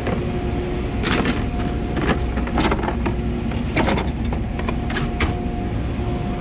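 A metal tool drawer rolls open and shut with clicks and rattles.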